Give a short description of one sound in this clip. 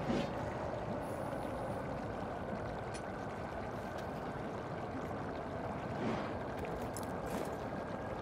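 Sparkling magic shimmers and chimes.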